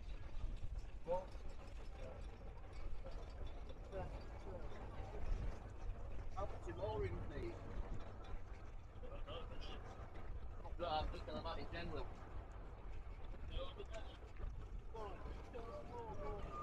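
Older adults chat casually close by.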